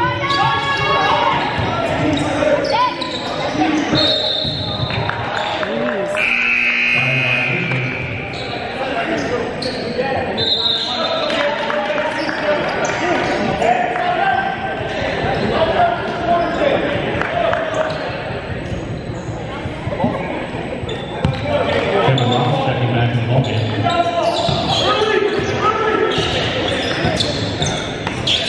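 A basketball bounces on a hardwood floor in an echoing hall.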